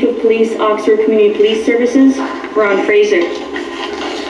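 A woman speaks briefly through a television loudspeaker.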